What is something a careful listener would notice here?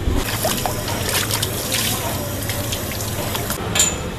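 Water splashes as hands scrub in it.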